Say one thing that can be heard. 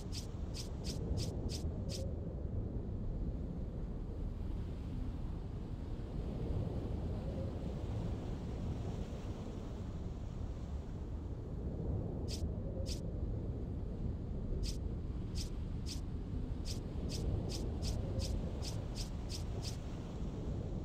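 Menu cursor clicks tick quickly, one after another.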